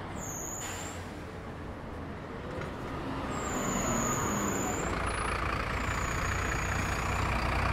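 A bus engine rumbles close by and grows louder.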